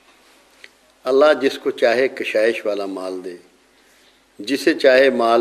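An elderly man speaks calmly and earnestly, close to a microphone.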